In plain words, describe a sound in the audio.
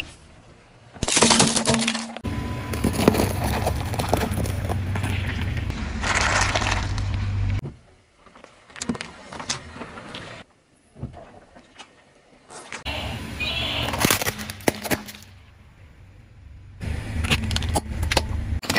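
A car tyre crushes plastic toys with cracking and popping.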